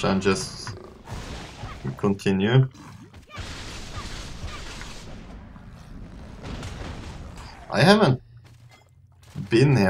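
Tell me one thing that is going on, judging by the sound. Blades slash and clash in a fast fight.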